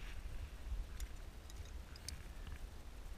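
Metal carabiners clink against a rope clip.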